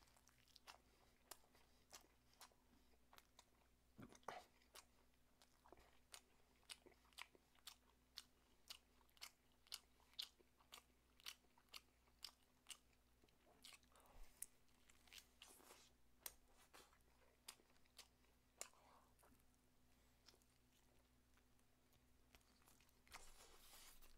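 A man chews loudly close to a microphone.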